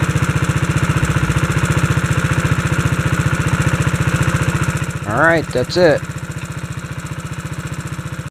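A small engine idles with a rapid, even chugging.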